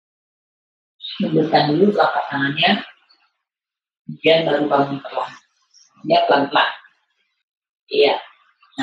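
A woman gives calm instructions through an online call.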